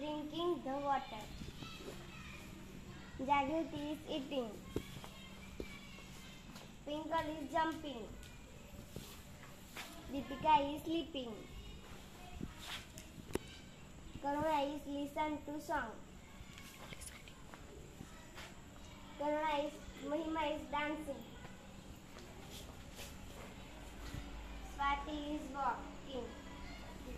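A young girl sings short phrases in bursts, close by.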